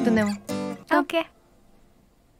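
A woman speaks briefly and cheerfully up close.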